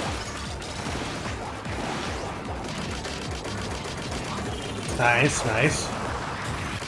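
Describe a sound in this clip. A game explosion bursts with a loud boom.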